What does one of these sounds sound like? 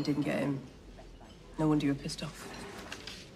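A woman speaks quietly and calmly nearby.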